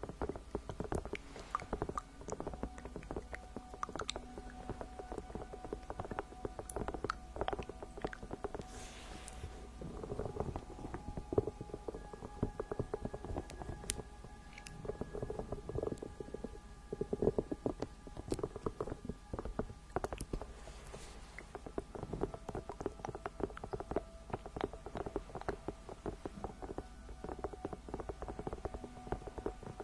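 Fingernails tap and scratch on a squishy toy close to a microphone.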